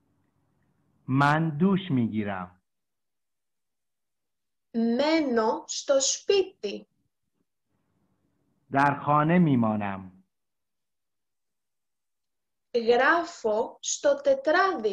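A young woman speaks slowly and clearly in short phrases, close to a microphone, with pauses between them.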